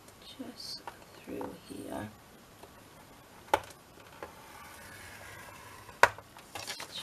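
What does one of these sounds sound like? A wooden stylus scrapes along a paper score line.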